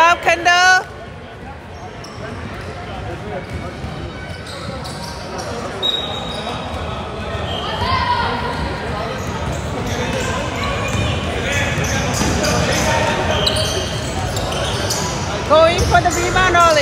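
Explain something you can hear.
Young players call out to each other in an echoing gym.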